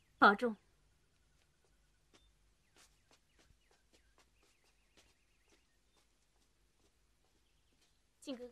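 A young woman calls out loudly and close by.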